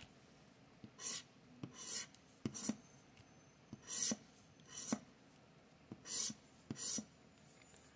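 A coin scratches at a card in short, quick strokes.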